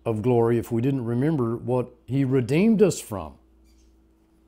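An older man speaks calmly and earnestly, close to a microphone.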